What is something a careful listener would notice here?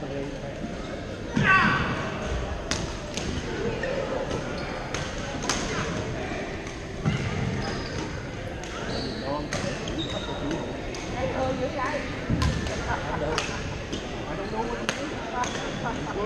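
Players call out and chatter in the echoing hall.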